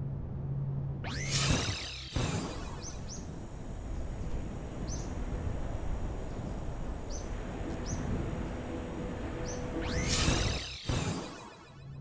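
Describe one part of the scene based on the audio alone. A sci-fi teleport effect whooshes and shimmers.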